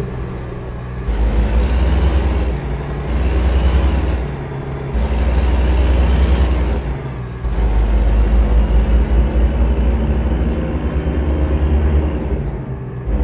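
A truck's diesel engine rumbles and revs up and down as it shifts through gears.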